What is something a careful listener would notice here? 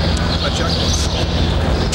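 A hand cart rolls over concrete.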